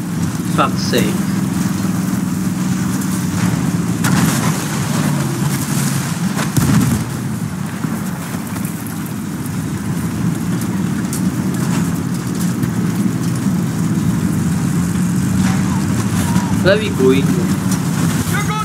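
A tank engine rumbles steadily and its tracks clank.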